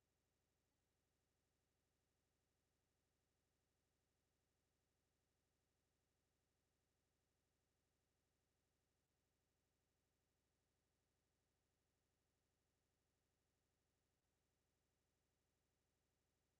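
A wall clock ticks steadily.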